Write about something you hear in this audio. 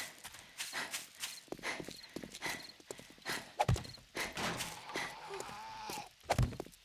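Footsteps crunch on rough gravel at a steady pace.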